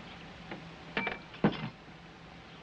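Glass clinks against glass.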